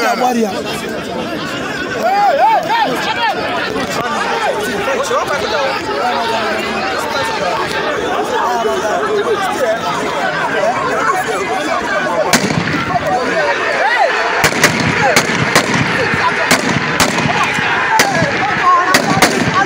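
A crowd of men shouts and talks excitedly outdoors nearby.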